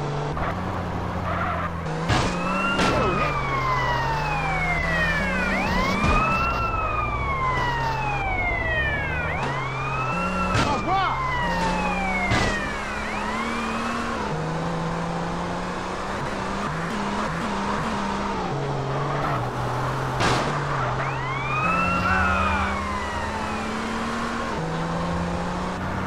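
A car engine roars and shifts through its gears.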